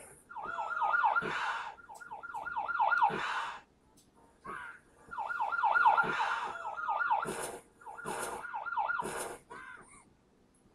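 A cartoon creature squeaks in quick, chirping bursts.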